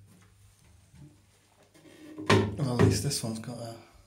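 A toilet lid knocks as it is lifted open.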